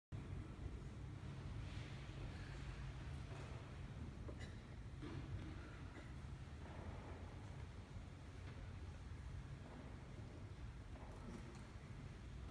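An audience murmurs quietly in a large echoing hall.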